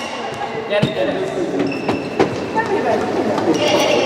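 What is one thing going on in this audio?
A ball bounces on a hard floor.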